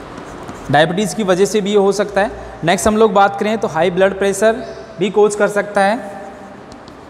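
A young man speaks clearly in a lecturing tone, close by.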